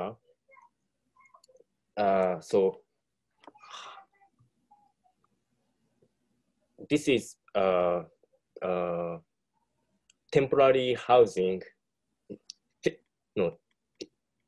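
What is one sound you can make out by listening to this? A man speaks calmly and in short phrases, close to a microphone.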